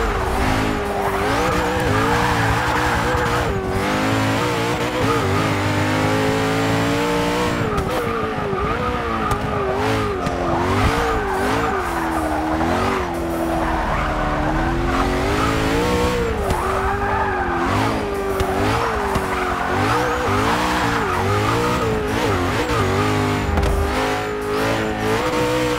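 A twin-turbo V8 supercar engine revs hard, rising and dropping as it shifts through the gears.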